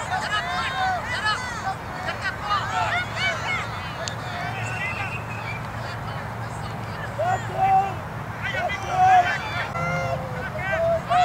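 Adults cheer and call out from the sidelines.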